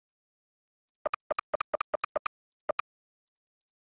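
Short electronic beeps sound in a quick run.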